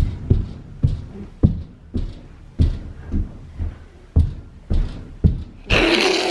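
A small child stomps heavily on a carpeted floor.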